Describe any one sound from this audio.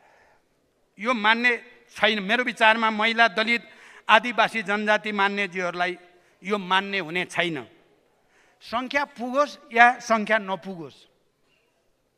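An elderly man speaks steadily into a microphone in a large hall.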